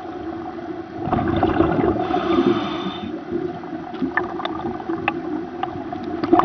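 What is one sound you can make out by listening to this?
Air bubbles gurgle and rumble underwater as a diver breathes out through a regulator.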